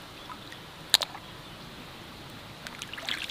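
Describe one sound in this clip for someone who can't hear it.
A hand splashes and gropes in shallow muddy water.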